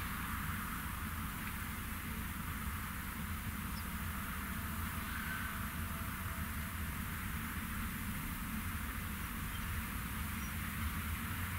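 A heavy farm machine's diesel engine rumbles steadily.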